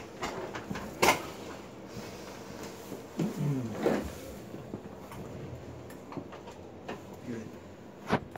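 A joint cracks sharply during a chiropractic adjustment.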